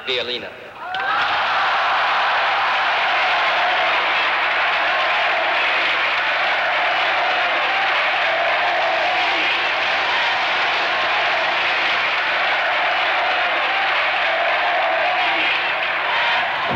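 A huge crowd cheers and roars loudly.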